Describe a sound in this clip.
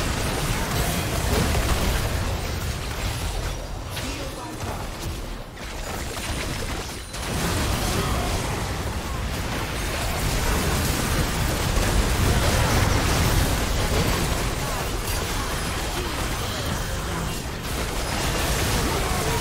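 Game spell effects crackle and burst in a chaotic fight.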